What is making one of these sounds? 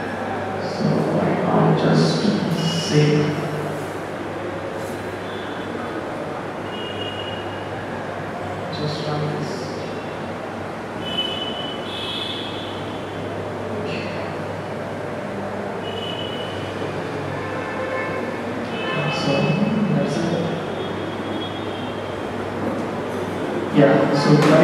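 A young man speaks calmly to an audience in a room with some echo.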